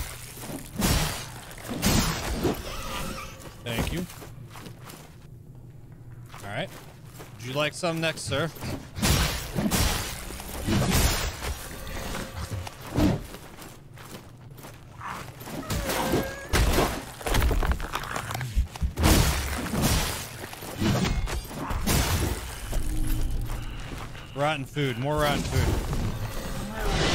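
Blades swing and strike with sharp thuds and clangs.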